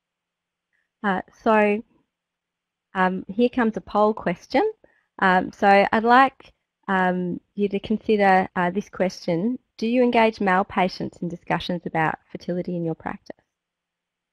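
A woman speaks calmly into a headset microphone, heard through an online call.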